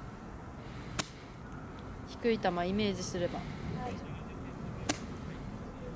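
A golf club strikes the ground and ball with a sharp click.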